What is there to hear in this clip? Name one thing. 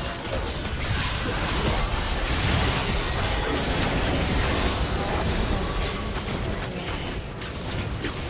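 Magic spells blast and crackle in a hectic fight.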